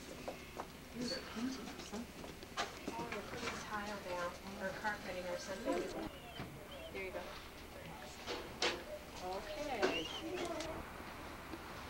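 A woman talks softly and warmly nearby.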